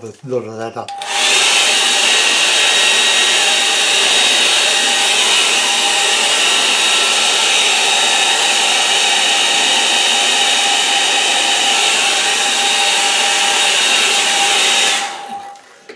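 A hair dryer blows with a steady, loud whir.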